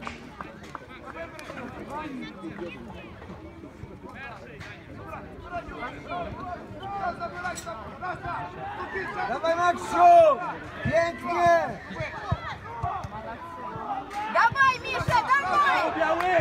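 Young children shout and call out excitedly across an open field.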